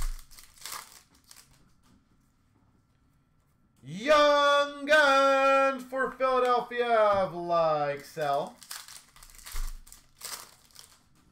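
Cards rustle and flick between fingers.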